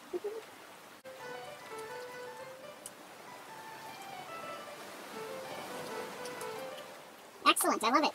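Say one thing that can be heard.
A piano plays a soft, slow melody.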